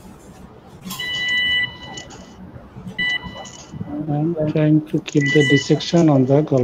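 An electric surgical tool sounds a steady high beeping tone.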